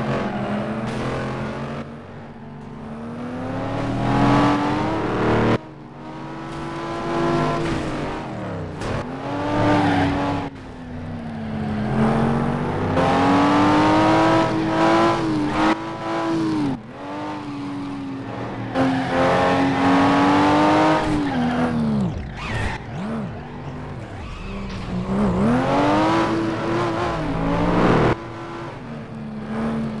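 Racing car engines roar and rev up and down as they speed past.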